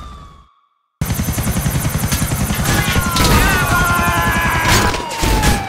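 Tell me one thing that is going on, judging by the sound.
A helicopter's rotor thumps rapidly overhead.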